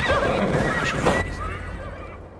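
A horse's hooves thud on a dirt path.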